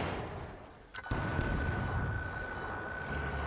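A targeting device gives a steady electronic tone.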